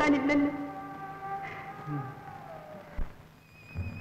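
A woman wails in a high, drawn-out voice.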